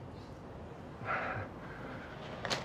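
A young man groans on the ground.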